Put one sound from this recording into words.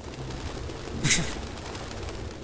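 Pigeons flutter their wings in a sudden burst.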